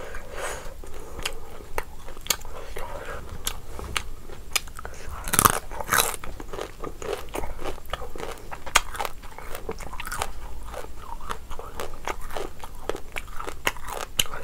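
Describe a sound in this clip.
A young woman chews and smacks her lips loudly and close up.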